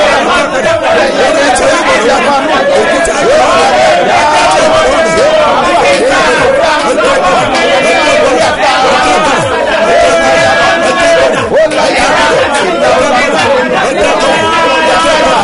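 A man sings with energy through a microphone.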